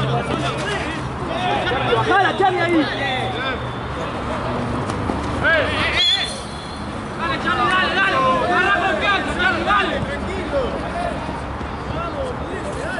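Young men shout and call out.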